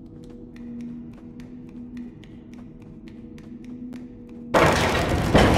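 Small footsteps patter on a hard floor.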